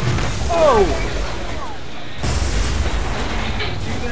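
A car crashes with a crunch of metal.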